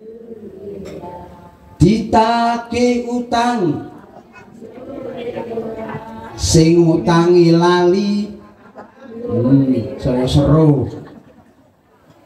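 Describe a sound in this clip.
A man speaks into a microphone over loudspeakers, addressing a gathering outdoors.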